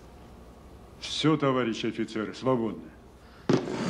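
An elderly man speaks slowly and quietly, close by.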